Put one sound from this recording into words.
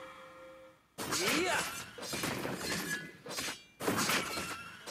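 Blades slash and strike with sharp hits.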